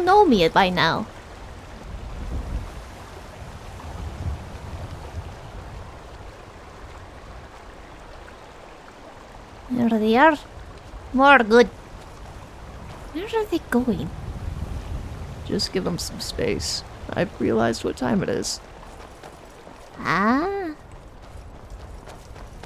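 Footsteps crunch on a stone path.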